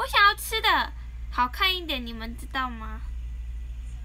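A young woman speaks brightly and animatedly close to a microphone.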